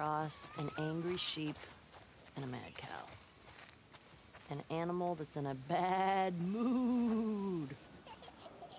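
A goat bleats.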